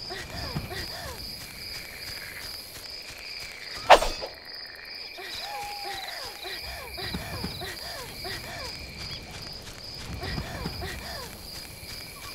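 Footsteps patter quickly through grass.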